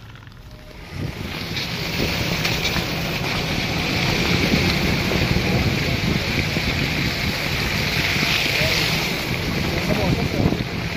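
Tyres roll over wet slush and snow.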